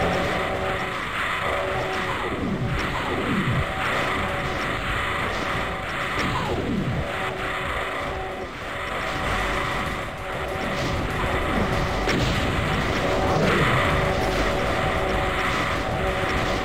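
Fireballs whoosh and explode over and over in a chaotic battle.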